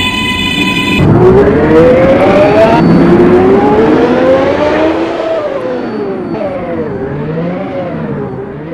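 An electric subway train's motors whine, rising as it speeds up and then falling as it slows.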